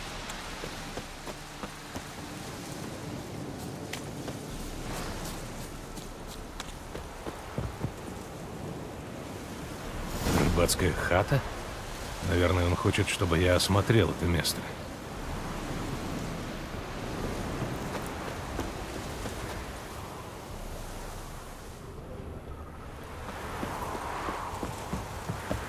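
Footsteps run over soft ground and wooden boards.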